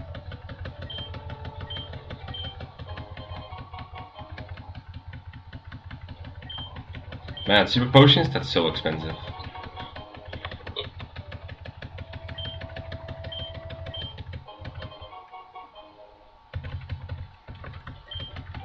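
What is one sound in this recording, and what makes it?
Short electronic beeps sound as menu choices are made.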